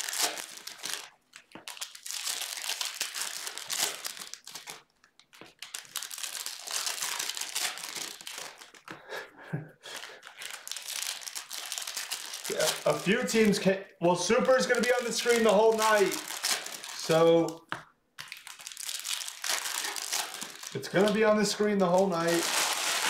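Plastic foil wrappers crinkle and tear close by.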